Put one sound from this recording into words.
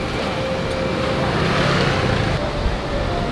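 A scooter engine passes by on a street.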